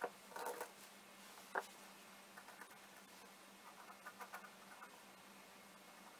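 A metal tool scrapes softly on wood.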